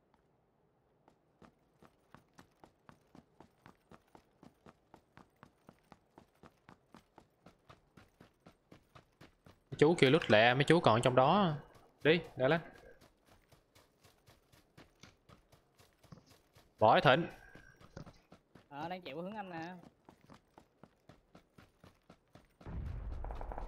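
Footsteps run quickly and steadily.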